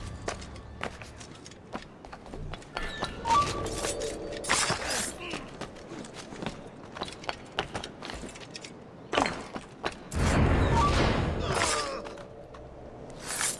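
Quick footsteps patter across roof tiles.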